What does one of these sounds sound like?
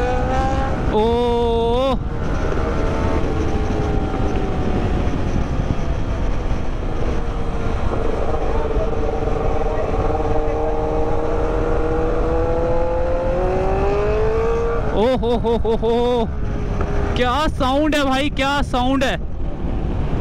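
A motorcycle engine revs in quick, warbling bursts.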